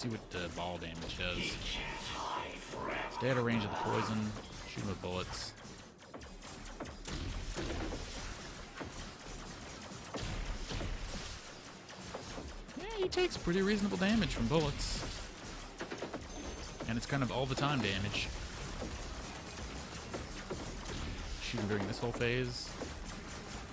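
Electronic energy blasts whoosh and crackle.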